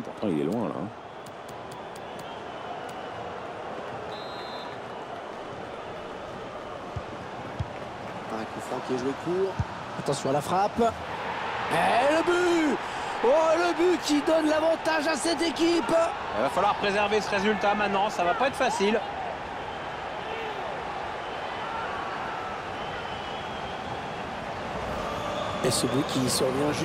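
A large stadium crowd murmurs steadily.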